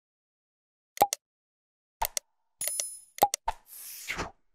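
A mouse button clicks a few times.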